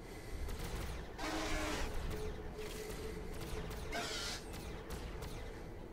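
Energy weapons fire in sharp, zapping bursts.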